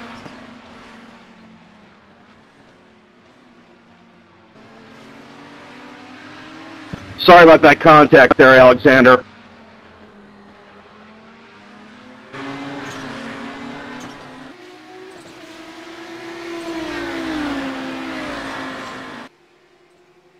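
Racing car engines roar and whine past at high speed.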